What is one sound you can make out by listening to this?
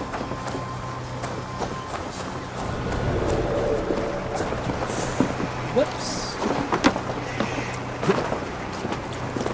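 Footsteps creep softly over wooden boards and ground.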